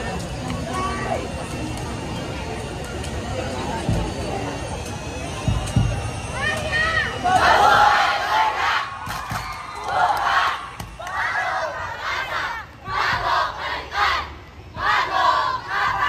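A crowd murmurs and chatters close by outdoors.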